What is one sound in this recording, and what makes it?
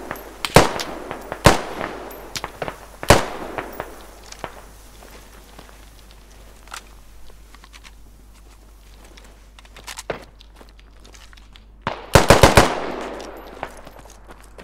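Loud explosions boom nearby and rumble away.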